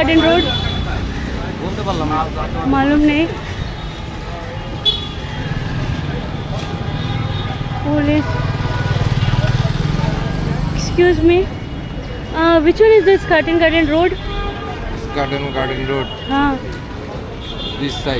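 Men talk loudly outdoors, heard from a little distance.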